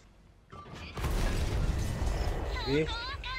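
A tank cannon fires with a heavy, booming blast.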